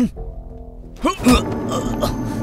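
A fist smacks hard into a man's face.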